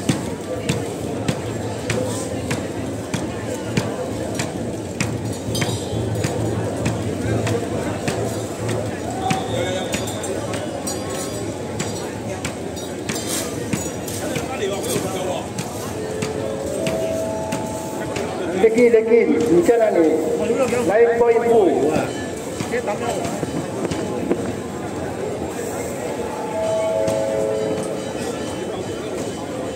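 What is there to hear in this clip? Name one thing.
A large crowd of men and women murmurs and chatters outdoors.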